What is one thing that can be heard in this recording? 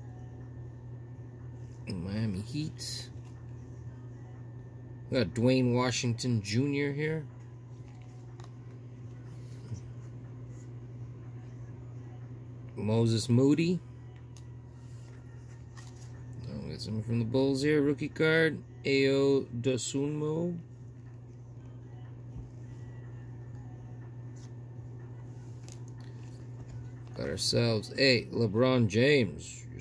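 Cards slide and rustle softly against each other.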